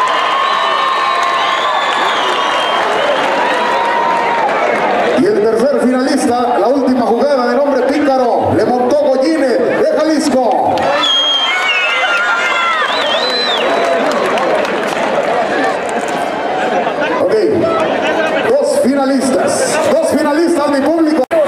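A man announces loudly over a loudspeaker in a large outdoor arena.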